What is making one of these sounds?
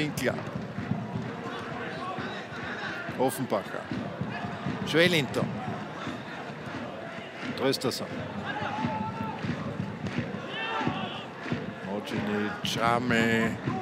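A large stadium crowd chants and roars in the distance.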